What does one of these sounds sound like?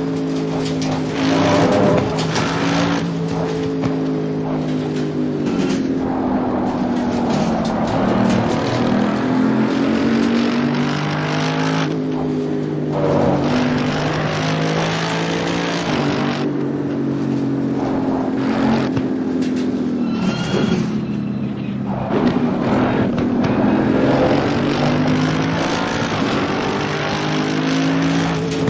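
A racing car engine roars, rising and falling in pitch as it shifts gears and brakes for corners.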